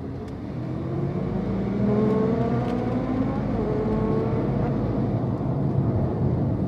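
A car engine revs up and rises in pitch as the car pulls away.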